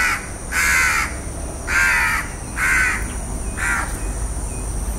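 A crow caws loudly and harshly, several times.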